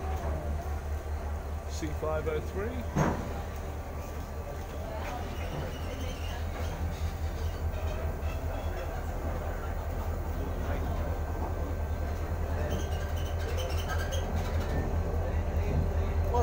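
A diesel locomotive engine rumbles deeply and steadily close by.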